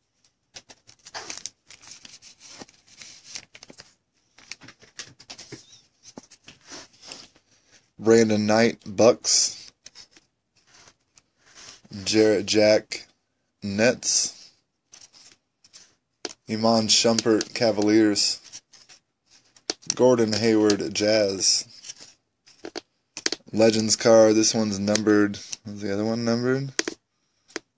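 Cards rustle and slide softly against each other in a hand.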